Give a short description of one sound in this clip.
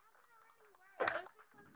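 Hands clap a few times.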